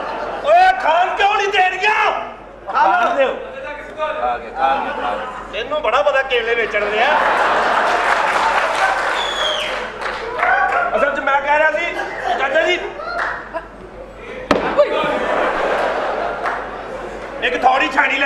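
A man speaks loudly and with animation.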